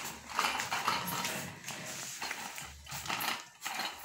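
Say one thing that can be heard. A wire cage door rattles open.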